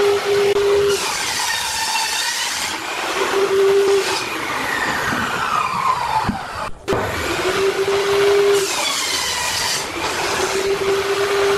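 A saw blade cuts through a wooden board with a loud whine.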